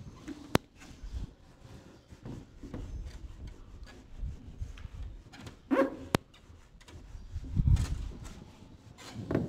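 A cloth eraser rubs and squeaks across a whiteboard.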